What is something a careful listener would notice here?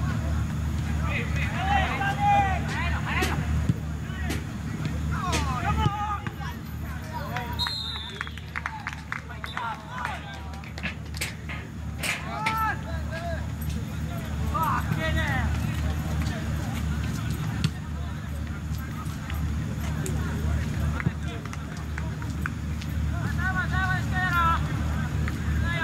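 Young men shout to each other from a distance across an open field.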